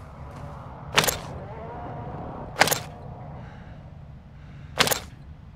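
A small object knocks down onto a wooden table.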